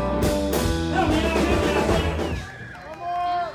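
A band plays loud electric guitars outdoors.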